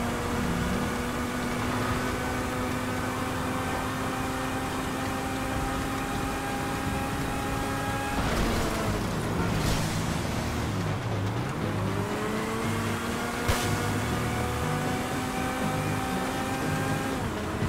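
An engine hums steadily, shifting pitch as it slows and speeds up again.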